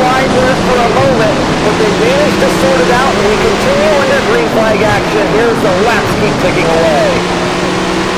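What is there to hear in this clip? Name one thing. Several other race car engines whine nearby in the first seconds.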